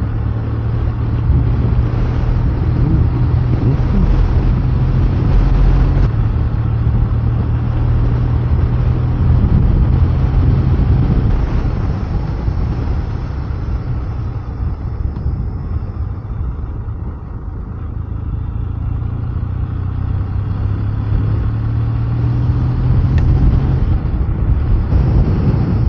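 A motorcycle engine hums steadily while riding along.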